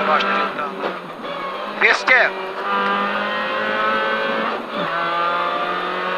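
A rally car engine roars loudly from inside the car, revving up and dropping between gear changes.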